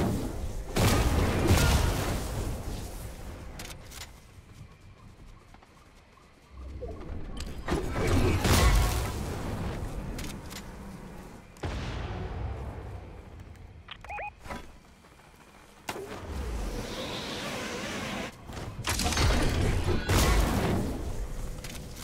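A heavy hammer slams the ground with a booming whoosh, again and again.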